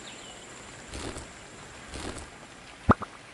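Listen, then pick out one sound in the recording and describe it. A sword swishes through the air.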